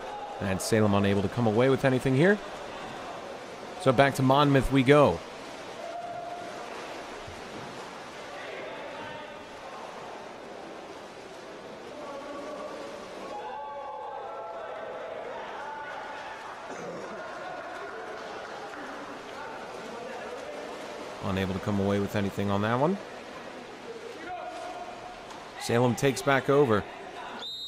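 Swimmers splash and churn water in a large echoing indoor pool.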